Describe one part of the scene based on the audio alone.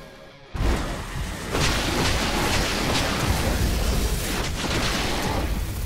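Blades slash and swish in a fierce fight.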